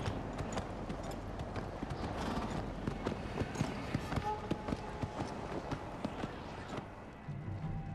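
Horse hooves clop slowly on a dirt path.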